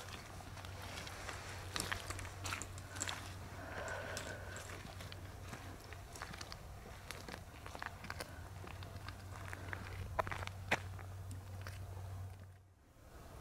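A young woman whispers quietly close by.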